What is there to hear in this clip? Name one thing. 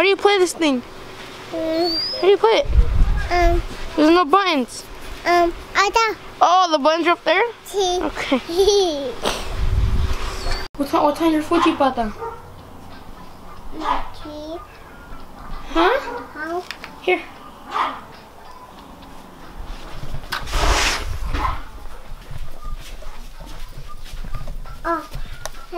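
A small child babbles and squeals.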